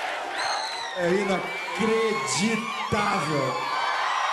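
A man sings through a microphone over loudspeakers.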